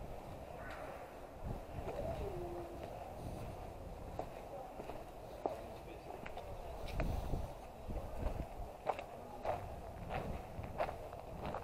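Footsteps crunch along a path outdoors.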